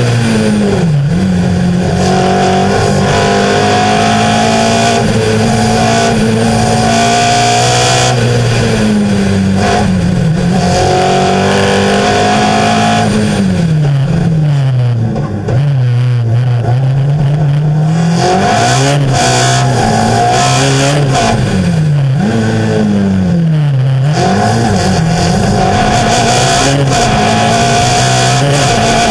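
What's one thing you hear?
Tyres hum and rumble on the road.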